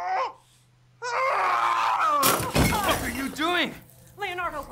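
A man shouts in alarm.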